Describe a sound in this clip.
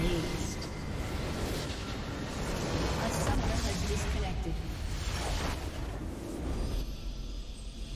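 A base structure explodes with a loud rumbling blast.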